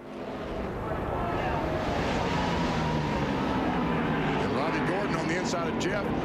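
Many race car engines roar loudly as the cars speed past.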